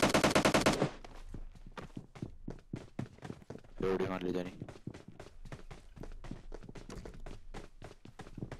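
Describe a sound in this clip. Footsteps thud quickly and steadily on the ground.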